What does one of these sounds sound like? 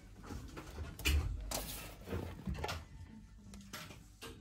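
A small metal tin scrapes and clinks as it is picked up from a shelf.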